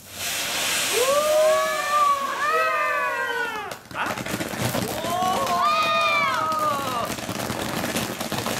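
A firework fountain hisses and sprays sparks loudly.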